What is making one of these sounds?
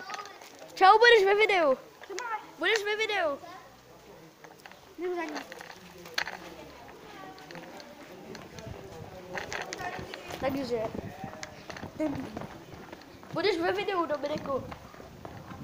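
A young boy shouts in a high voice, close to the microphone.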